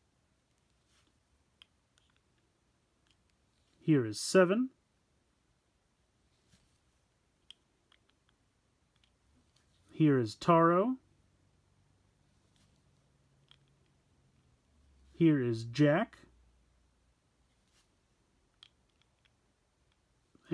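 Plastic discs click softly as they are set into small stands.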